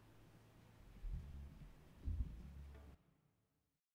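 A bass guitar plays low notes in an echoing hall.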